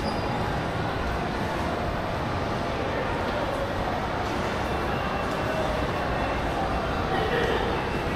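An escalator hums steadily in a large echoing hall.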